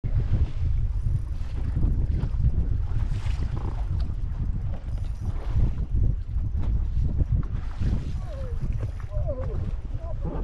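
Wind buffets loudly across open water.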